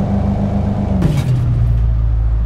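A car crashes into another car with a loud thud.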